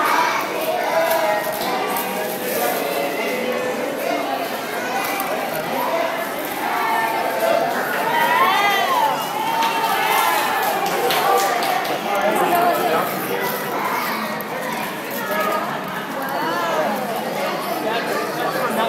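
Children and women talk and chatter excitedly close by.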